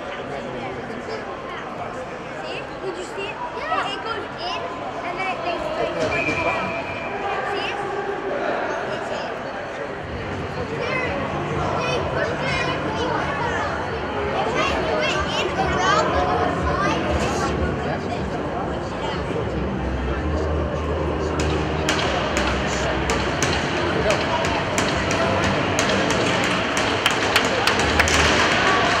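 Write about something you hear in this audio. Voices of players and spectators murmur and call out in a large echoing rink.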